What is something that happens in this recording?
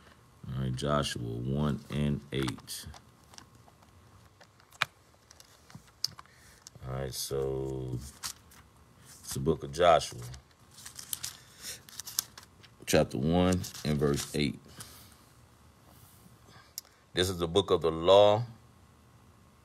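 A middle-aged man speaks calmly and closely into a phone microphone, with pauses.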